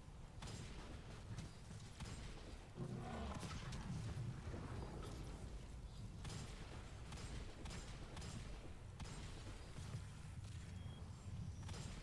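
Gunshots fire in a video game.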